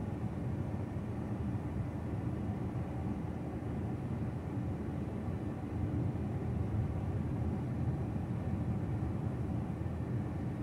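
A car engine hums steadily from inside the car as it drives along a street.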